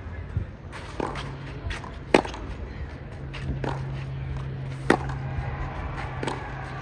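A tennis ball is struck sharply with a racket, again and again.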